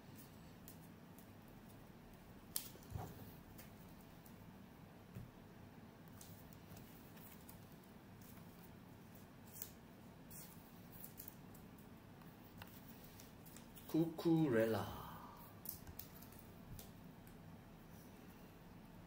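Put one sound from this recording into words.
Plastic card sleeves crinkle and rustle as they are handled.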